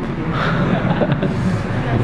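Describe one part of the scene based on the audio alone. A man laughs briefly.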